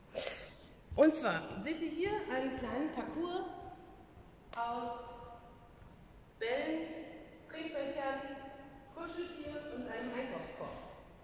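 A young woman speaks with animation in a large echoing hall.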